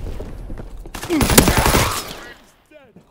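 A shotgun fires.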